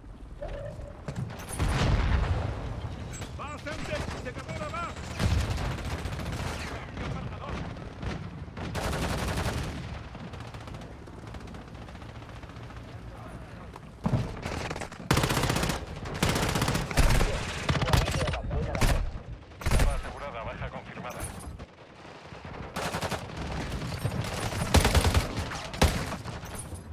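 Automatic rifle gunfire bursts in a video game.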